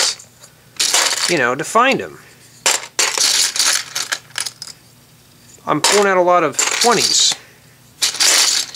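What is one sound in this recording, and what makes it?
Plastic bricks clatter and rattle in a box.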